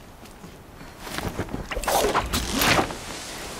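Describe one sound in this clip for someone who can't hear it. A pulley whirs and rattles along a taut rope.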